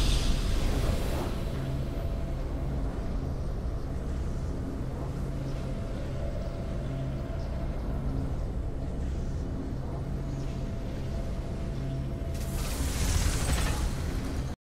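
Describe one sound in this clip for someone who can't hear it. A triumphant music cue plays softly.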